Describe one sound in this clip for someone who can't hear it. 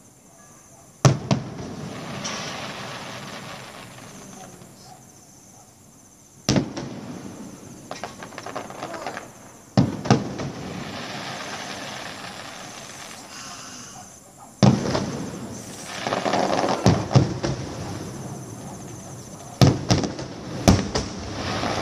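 Fireworks boom in the distance, echoing off surrounding buildings.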